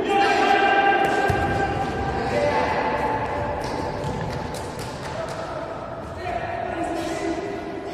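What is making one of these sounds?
A ball is kicked with sharp thuds in an echoing hall.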